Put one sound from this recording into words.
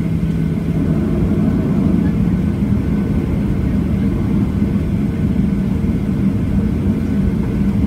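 Jet engines rumble steadily, heard from inside an aircraft cabin.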